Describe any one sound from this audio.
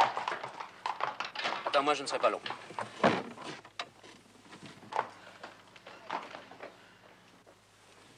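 Carriage wheels rattle over cobblestones.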